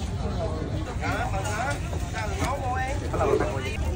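Young men talk nearby.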